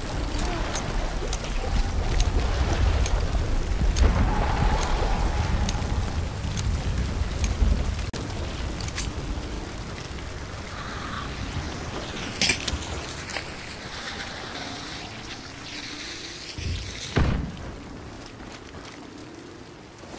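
Footsteps squelch through wet grass and mud.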